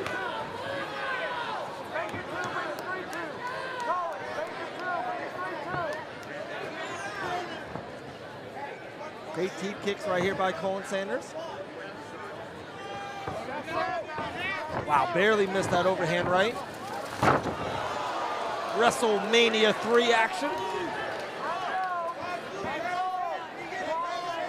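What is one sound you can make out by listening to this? A crowd cheers and shouts, growing loud around a knockdown.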